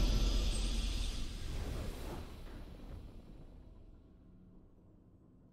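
A video game victory sound rings out and fades away.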